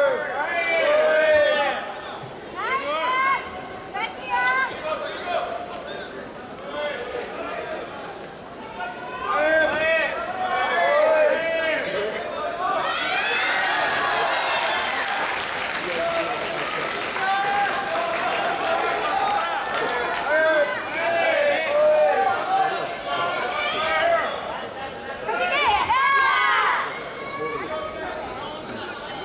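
A large crowd shouts and calls out in a big echoing hall.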